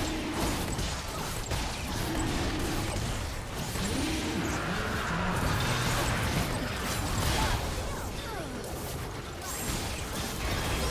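Fantasy battle sound effects crackle, whoosh and boom as characters clash.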